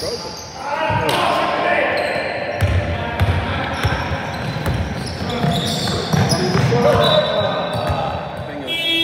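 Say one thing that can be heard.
Young men shout and call out to each other across the echoing hall.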